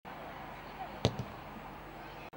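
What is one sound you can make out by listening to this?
A football is kicked hard outdoors.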